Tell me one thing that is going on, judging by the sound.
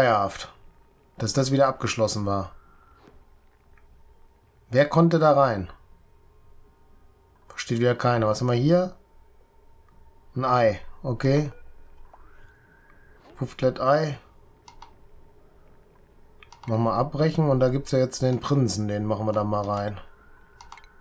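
A middle-aged man talks calmly into a close microphone, in short bursts with pauses.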